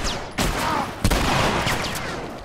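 A gun fires a loud shot close by.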